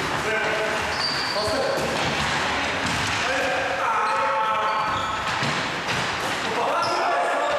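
Sneakers squeak sharply on a hard floor in an echoing hall.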